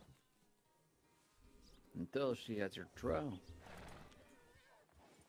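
Horses shuffle their hooves on dry dirt.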